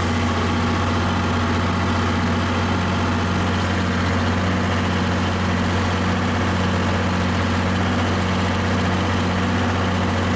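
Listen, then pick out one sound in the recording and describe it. Chopped silage slides and rustles out of a trailer.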